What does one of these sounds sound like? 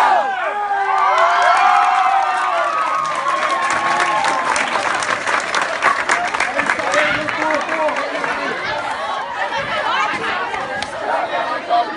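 A crowd of young people cheer and shout excitedly.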